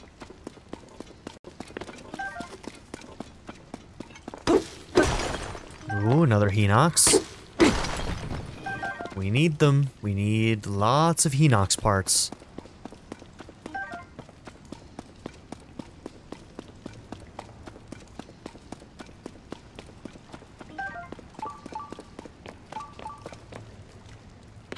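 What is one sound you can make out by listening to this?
Footsteps patter softly on the ground.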